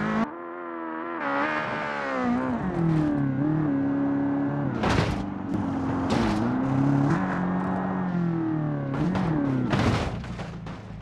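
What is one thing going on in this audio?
A large engine roars and changes pitch as a bus drives uphill.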